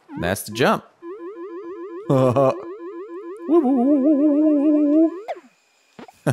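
A small cartoon character puffs up and floats with bouncy, tooting game sounds.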